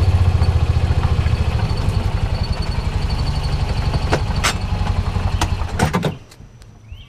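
An engine idles with a steady low rumble, then cuts off.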